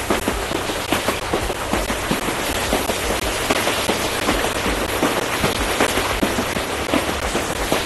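A train rumbles and clatters along the rails.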